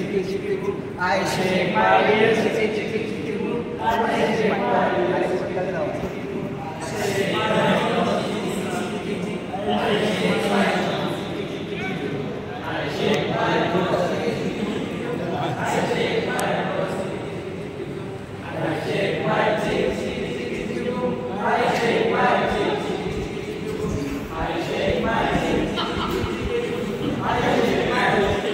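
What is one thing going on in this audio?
Several people chatter and laugh.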